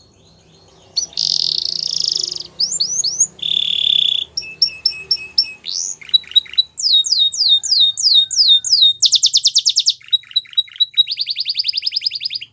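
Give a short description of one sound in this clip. A canary sings loudly close by with rapid trills and whistles.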